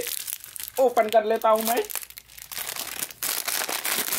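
Small candies patter onto a hard surface.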